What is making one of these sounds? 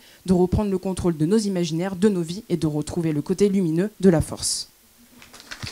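A young woman speaks with animation through a microphone in a large echoing hall.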